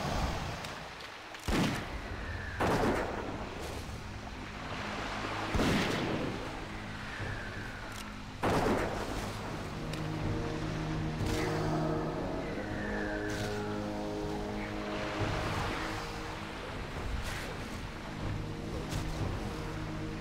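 Swords clash and hit in a game fight.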